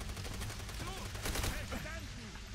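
A rifle shot cracks.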